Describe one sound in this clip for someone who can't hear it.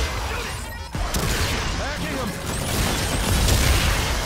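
An explosion booms in a video game.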